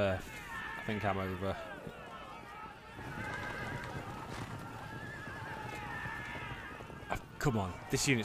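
A battle rumbles with the clash and shouts of many soldiers.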